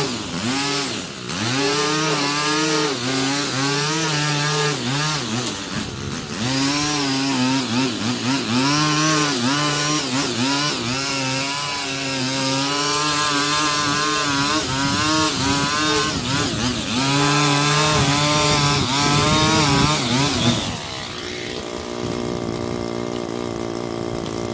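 A string trimmer engine whines as it cuts grass.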